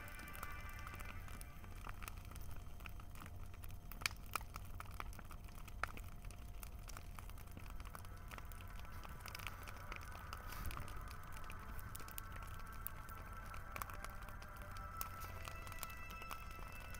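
Burning wood crackles and pops sharply.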